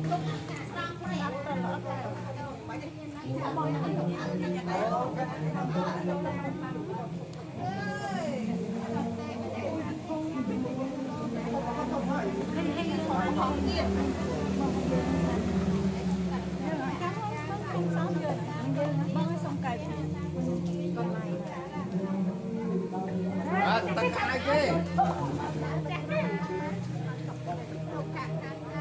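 A group of men and women chant together in steady, low voices nearby.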